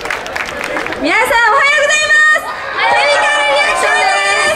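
Young women sing into microphones through loudspeakers.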